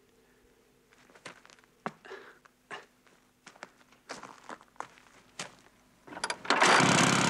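Footsteps creak and knock on wooden planks.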